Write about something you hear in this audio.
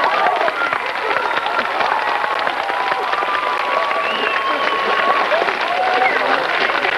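An acoustic guitar strums along.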